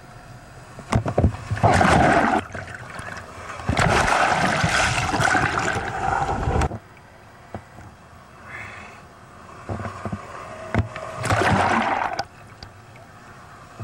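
Ocean waves break and crash with a rushing roar.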